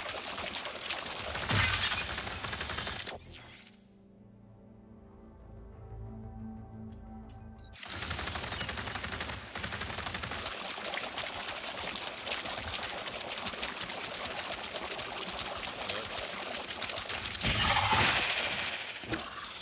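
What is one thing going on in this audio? Water splashes steadily as a small creature wades through it.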